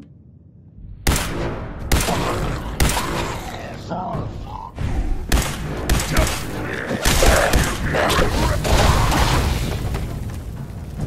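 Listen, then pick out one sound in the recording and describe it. A heavy gun fires rapid bursts of loud shots.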